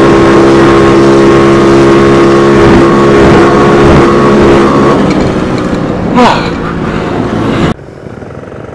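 A motorcycle engine drones steadily up close.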